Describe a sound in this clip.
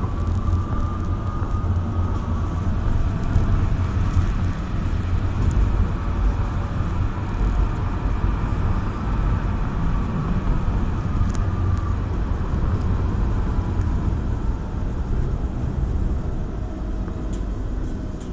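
A vehicle's engine hums and its tyres rumble steadily on the road from inside the cab.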